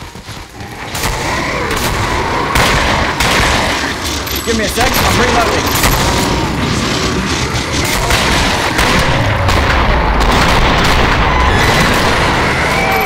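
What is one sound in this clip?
Pistols fire in rapid, sharp shots.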